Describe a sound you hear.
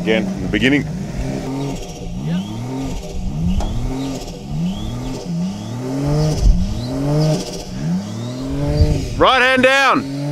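A vehicle engine revs hard again and again, rising in pitch each time.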